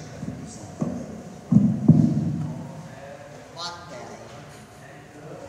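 A woman talks quietly at a distance in a large echoing hall.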